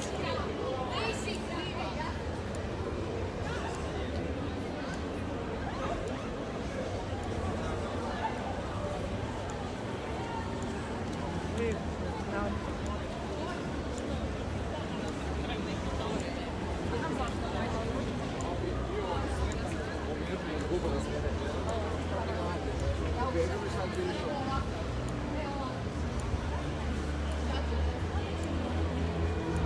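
A crowd of people chatters in a busy street outdoors.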